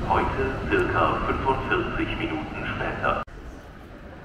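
Adults chatter on a busy platform that echoes.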